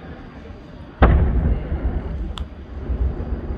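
A firework bursts with a loud, deep boom that rumbles away.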